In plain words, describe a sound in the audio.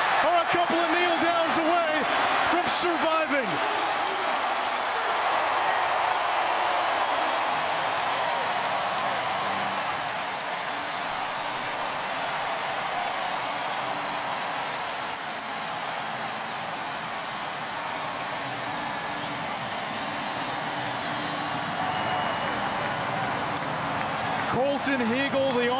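A large crowd cheers and roars loudly in a big stadium.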